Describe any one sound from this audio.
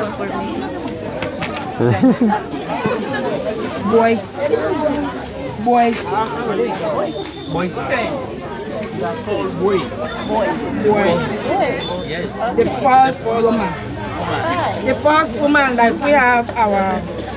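A crowd of men, women and children chatter and call out loudly outdoors.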